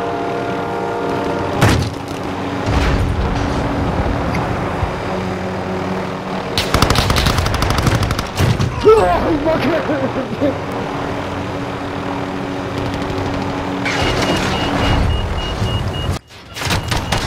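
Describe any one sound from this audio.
A helicopter's rotor whirs and drones steadily.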